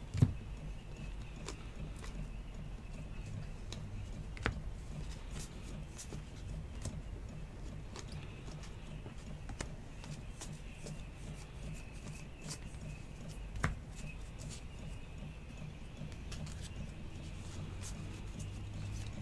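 Trading cards rustle and slide against each other as hands shuffle through them.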